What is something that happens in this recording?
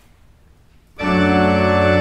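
A brass ensemble suddenly starts playing a loud, sustained chord in a large echoing hall.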